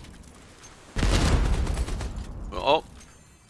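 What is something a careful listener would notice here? A heavy explosion booms across open water.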